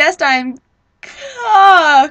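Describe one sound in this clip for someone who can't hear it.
A young woman sings loudly with feeling.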